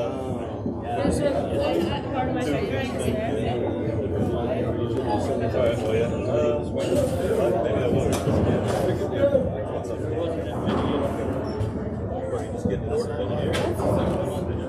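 A rubber ball smacks sharply against walls, echoing in a hard-walled court.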